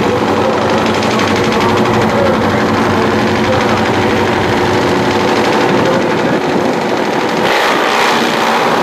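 A drag racing motorcycle engine idles with a loud, steady rumble.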